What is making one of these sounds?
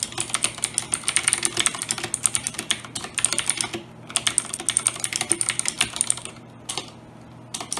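Keys on a mechanical keyboard click rapidly and loudly as someone types fast.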